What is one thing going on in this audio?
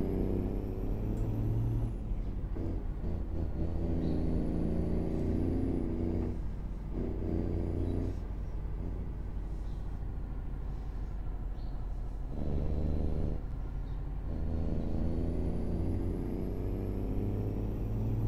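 A truck engine drones steadily, rising and falling in pitch as it changes gears.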